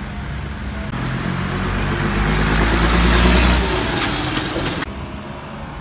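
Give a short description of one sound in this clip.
A heavy truck roars past close by, growing louder and then cutting off.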